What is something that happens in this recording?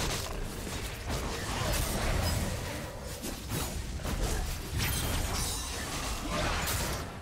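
Magic blasts whoosh and crackle in a fast fight.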